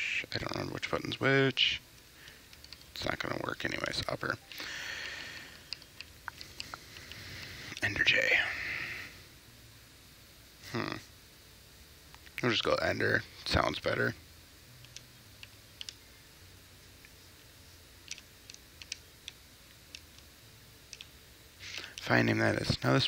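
A young man talks casually into a close microphone, in short bursts.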